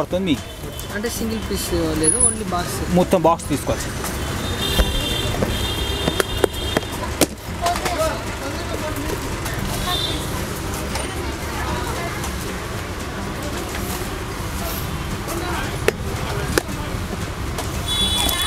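Glass bangles clink inside a box.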